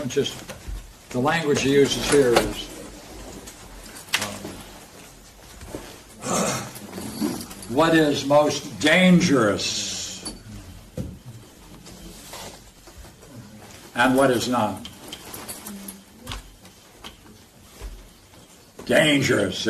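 An elderly man speaks calmly, pausing between phrases.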